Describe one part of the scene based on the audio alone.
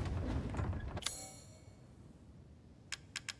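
A menu clicks softly.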